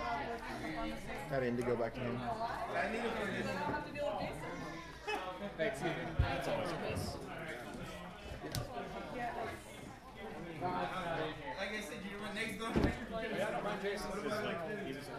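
Cards are shuffled by hand with a soft riffling.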